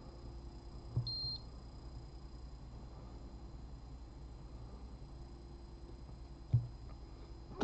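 A button clicks under a finger.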